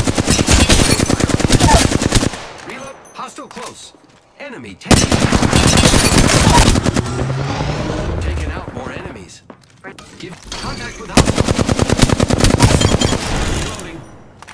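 A rapid automatic gun fires loud bursts.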